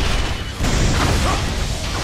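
An explosion roars and rumbles.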